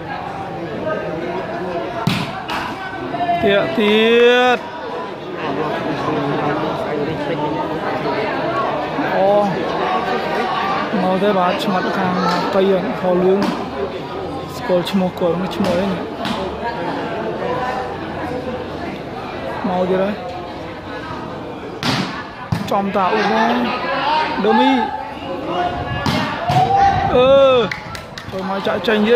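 A large crowd chatters and shouts in an echoing hall.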